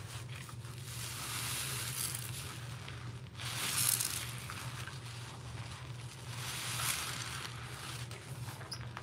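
A wet sponge squelches as it is squeezed.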